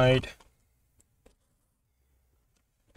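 A plastic pry tool clicks against a metal laptop case.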